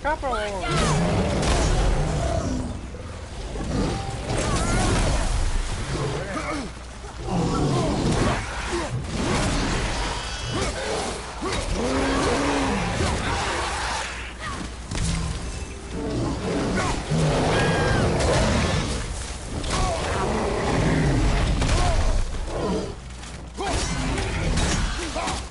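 Large creatures roar and grunt.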